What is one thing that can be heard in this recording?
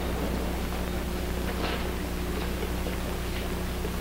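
A child's footsteps tap lightly on a hard floor.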